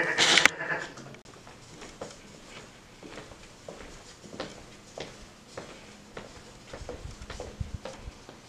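Footsteps tap on a hard floor in an echoing hallway.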